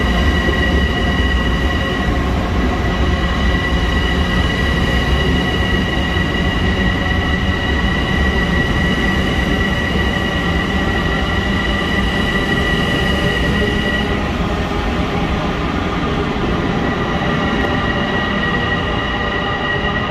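Train wheels squeal with a steady high whine.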